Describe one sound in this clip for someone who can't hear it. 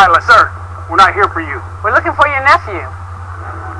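A woman speaks calmly and firmly.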